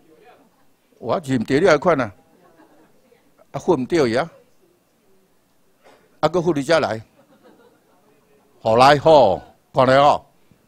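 A middle-aged man speaks calmly through a microphone, his voice amplified in a room, with pauses between phrases.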